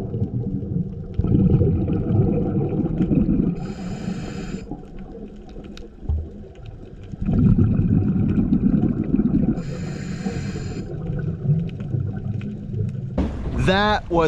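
A diver's breathing bubbles and rumbles underwater.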